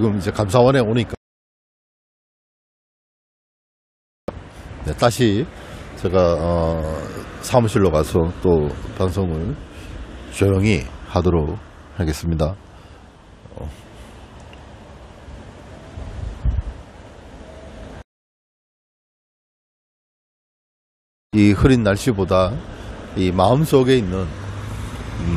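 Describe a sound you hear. A middle-aged man talks calmly and close to a clip-on microphone, with pauses.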